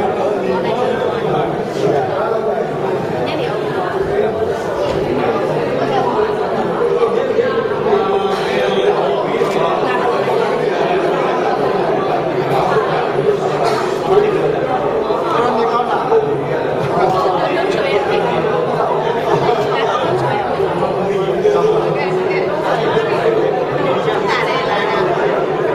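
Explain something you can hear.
Several people talk at once nearby.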